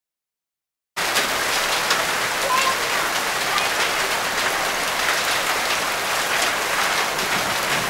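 Hail patters and rattles steadily on grass outdoors.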